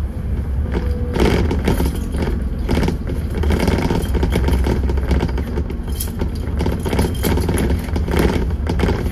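Cars pass by on the road.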